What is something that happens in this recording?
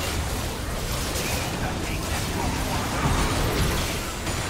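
Magical blasts burst with deep booms.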